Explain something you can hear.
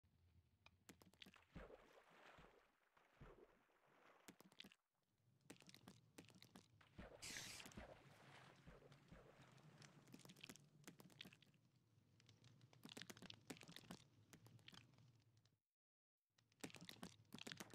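Soft interface clicks tick as items are selected in a menu.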